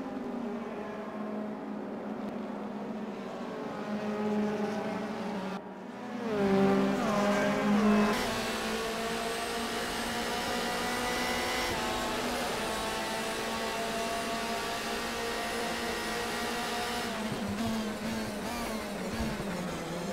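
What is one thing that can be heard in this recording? A racing car engine roars at high revs, shifting gears as it speeds along.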